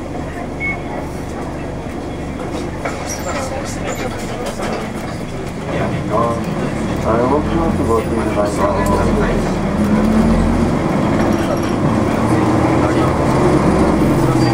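A car engine hums steadily and grows louder as it drives.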